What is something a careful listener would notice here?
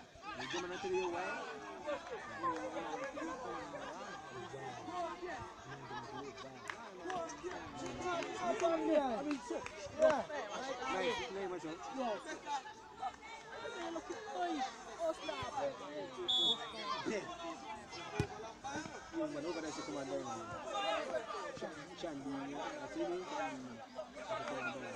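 A crowd of young people chatters and calls out outdoors close by.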